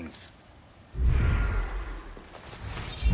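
A magical burst whooshes.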